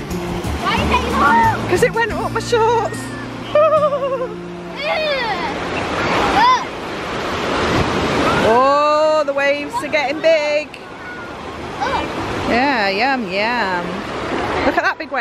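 A young girl talks with excitement close by.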